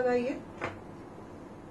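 A woman speaks briefly and calmly, close by.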